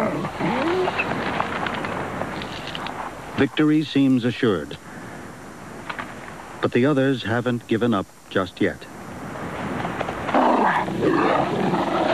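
A coyote tears and chews at a carcass up close.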